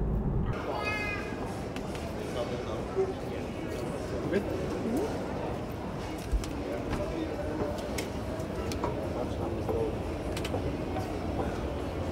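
A busy crowd murmurs in a large echoing hall.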